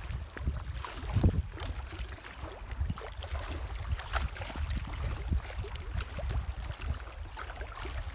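Water splashes at the shore.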